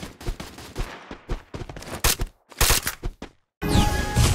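Blades swish and strike in quick, repeated blows.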